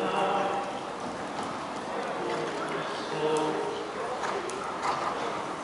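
A horse canters with soft, rhythmic hoofbeats on sand.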